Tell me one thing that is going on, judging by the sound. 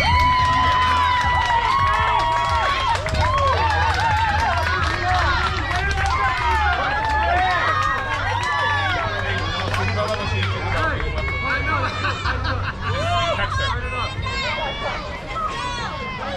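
Young girls shout and cheer loudly nearby.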